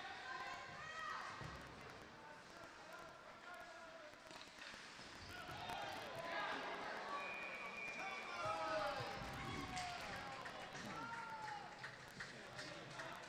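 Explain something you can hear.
Young women shout to each other across a large echoing rink.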